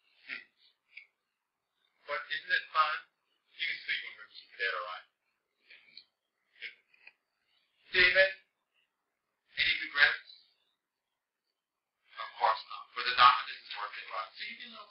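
A man speaks calmly and slowly into a close microphone, with pauses.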